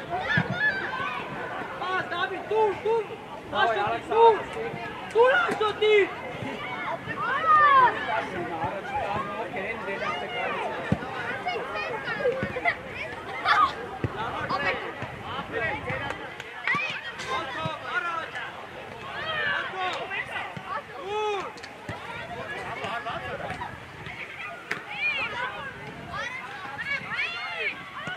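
Children shout and call out across an open outdoor pitch.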